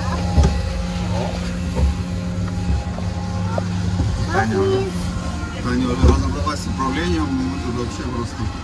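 A fairground ride rumbles and rattles as it turns.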